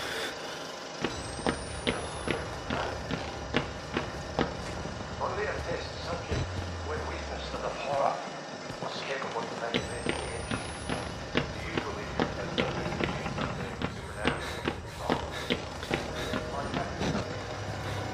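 Footsteps thud steadily on wooden floorboards.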